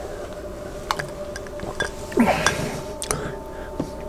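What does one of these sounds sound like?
A man sips and swallows a drink.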